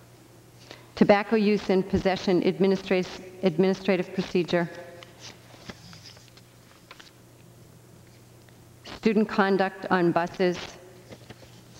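A middle-aged woman speaks calmly into a microphone.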